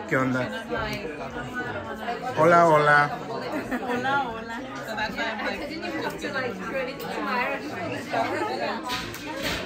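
Several women chat and laugh nearby.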